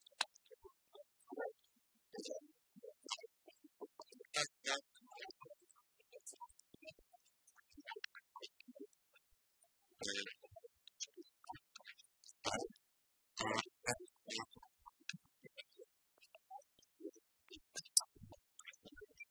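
Keyboards clatter softly in a quiet room.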